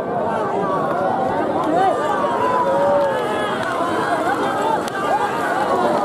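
A large outdoor crowd cheers and shouts excitedly.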